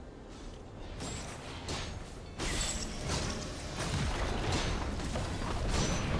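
Video game combat effects crackle and boom in quick bursts.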